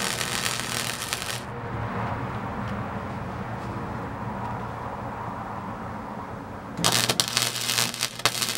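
An arc welder crackles and sizzles loudly.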